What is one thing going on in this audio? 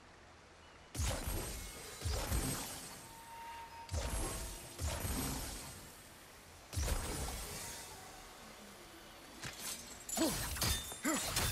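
Heavy metallic thuds strike repeatedly.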